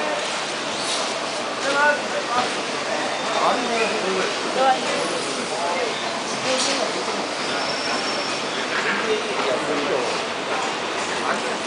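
A busy crowd murmurs and chatters in a large echoing hall.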